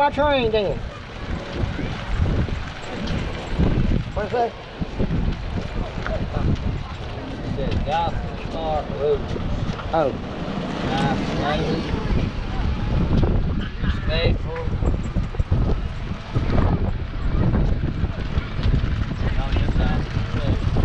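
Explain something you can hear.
An electric cart's motor whirs as it drives along.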